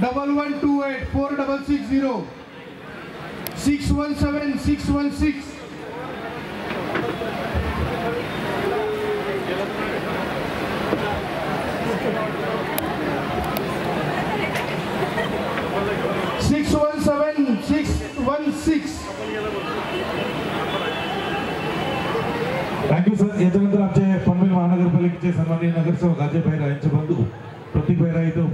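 A man speaks loudly through a loudspeaker.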